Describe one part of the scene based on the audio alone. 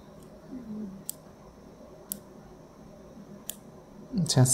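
A small knob clicks softly as it is turned.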